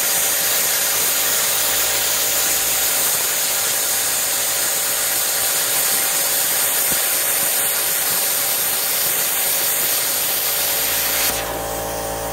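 An angle grinder cuts through steel with a loud, steady whine.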